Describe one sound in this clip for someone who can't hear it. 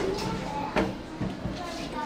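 An elevator button clicks as a finger presses it.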